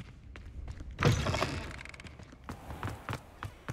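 A heavy wooden door swings open.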